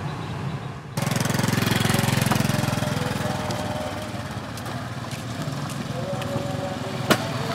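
Motorbikes ride past on a dirt road.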